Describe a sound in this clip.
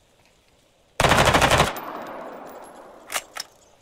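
A rifle fires a short rapid burst that echoes away.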